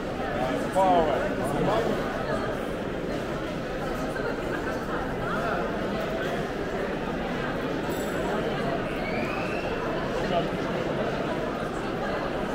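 A crowd of people chatters and murmurs all around in a busy echoing hall.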